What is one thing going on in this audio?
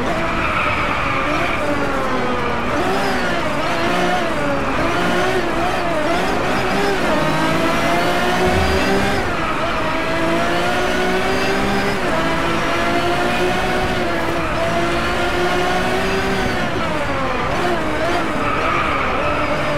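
A racing supercar engine drops in pitch as it slows and shifts down through the gears.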